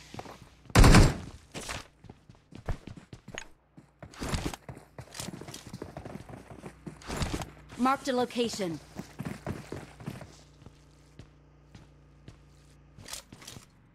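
Boots thud on wooden stairs.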